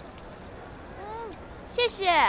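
Another young woman answers briefly in a lively voice, close by.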